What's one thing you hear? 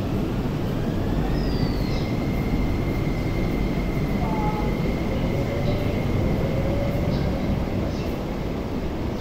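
A train's electric motor whines and rises in pitch as the train pulls away.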